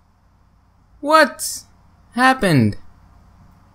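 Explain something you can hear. A young man groans in dismay into a microphone.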